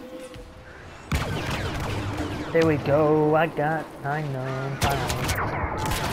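Blaster guns fire in quick sharp shots.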